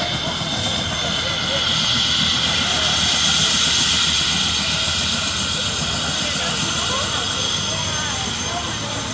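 Helicopter rotor blades thump as they turn.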